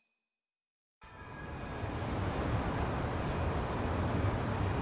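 Distant footsteps and street bustle murmur outdoors.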